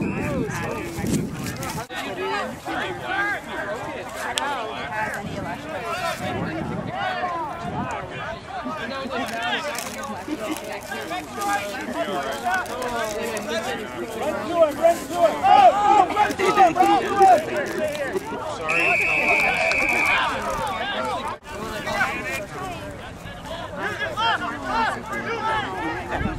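Men talk and call out across an open field.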